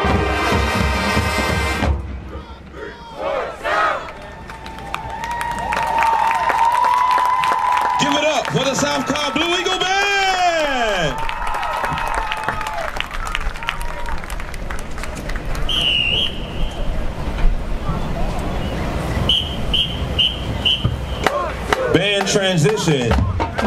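A marching band plays brass and drums outdoors.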